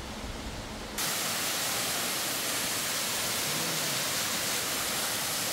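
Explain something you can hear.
A small waterfall splashes onto rocks.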